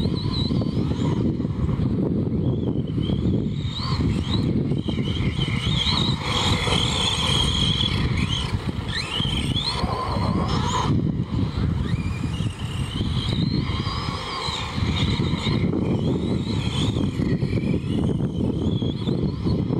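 A small electric motor whines as a toy car races over dirt.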